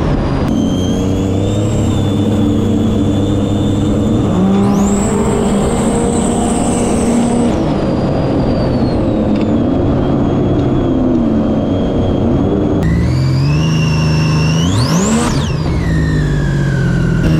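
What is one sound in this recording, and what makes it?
A jet ski engine roars and revs nearby.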